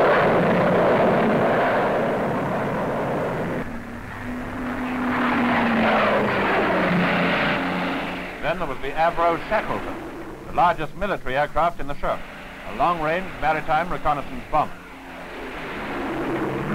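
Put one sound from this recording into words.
Aircraft engines roar loudly as planes fly low overhead.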